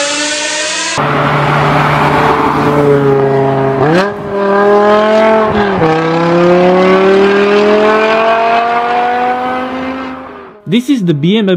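A sports car's engine roars as it speeds past and shifts gears.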